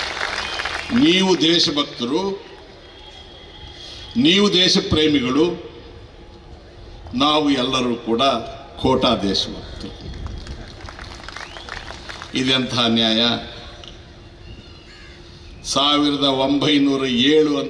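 A large crowd of men chants slogans together in loud, repeated bursts outdoors.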